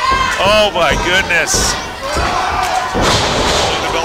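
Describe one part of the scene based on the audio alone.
Wrestlers' bodies thud onto the ring mat.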